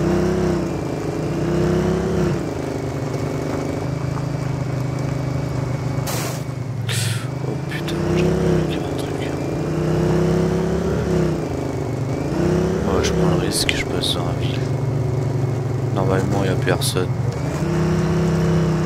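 A quad bike engine hums steadily and rises and falls in pitch as it speeds up and slows down.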